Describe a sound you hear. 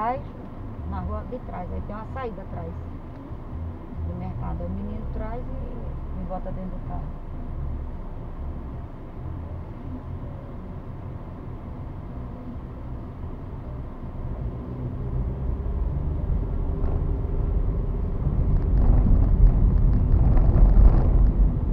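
A car engine hums low, then grows louder as the car pulls away.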